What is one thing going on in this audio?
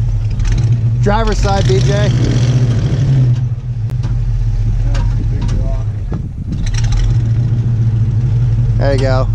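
Tyres grind and crunch over loose rocks.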